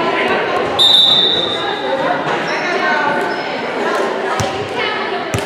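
A crowd of girls and spectators chatters in a large echoing gym.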